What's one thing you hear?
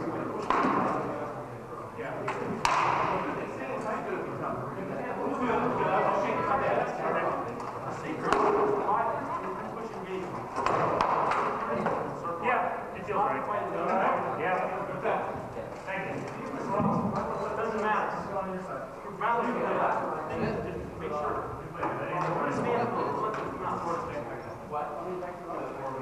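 Several people talk at once in a large echoing hall.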